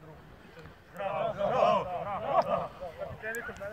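A group of young men shouts together loudly.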